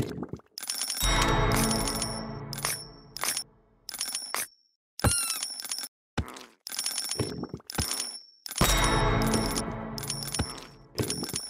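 A short musical jingle plays as a new level begins.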